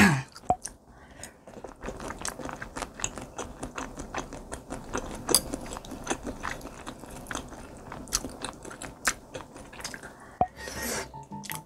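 A young woman chews wetly close to a microphone.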